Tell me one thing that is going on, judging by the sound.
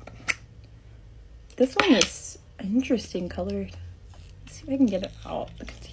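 A metal tin lid clicks and scrapes as it is pried open.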